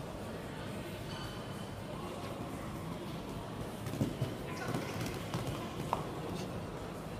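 Hooves thud on soft sand as a horse canters.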